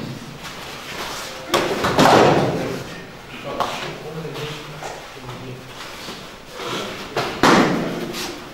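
Bare feet shuffle and slap on a mat.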